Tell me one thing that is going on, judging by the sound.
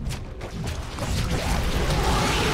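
Weapons fire and explosions crackle in a noisy battle.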